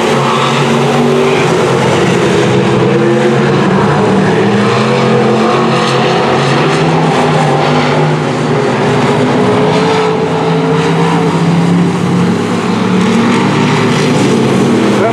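Race car engines roar loudly around a dirt track, rising and falling as the cars pass.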